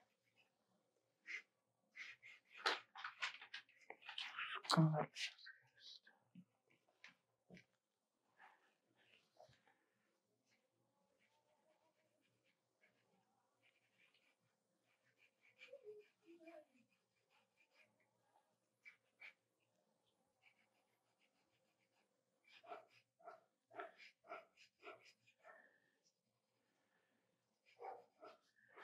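A pencil scratches and rubs across paper.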